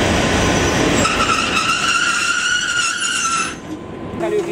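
Train wheels squeal shrilly on the rails.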